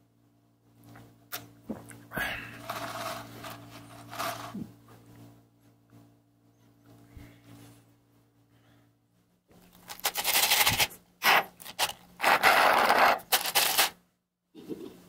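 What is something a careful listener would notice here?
Ice rattles and clinks inside a plastic cup as a straw stirs it.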